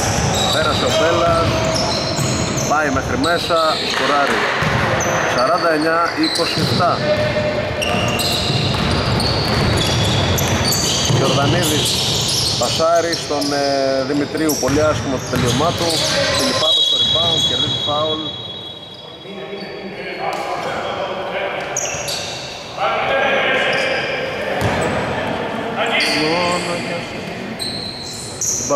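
Sneakers squeak sharply on a wooden court in a large echoing hall.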